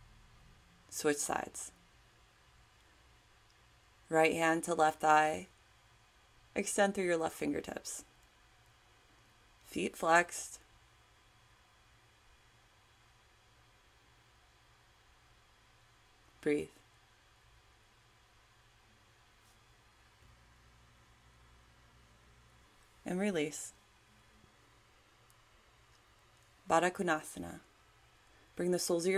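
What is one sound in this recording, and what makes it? A woman speaks calmly in short phrases with long pauses.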